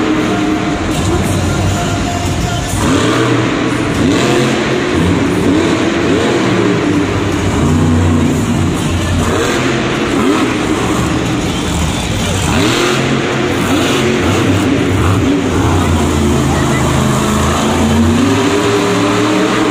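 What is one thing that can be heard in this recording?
Metal crunches as a heavy truck drives over crushed cars.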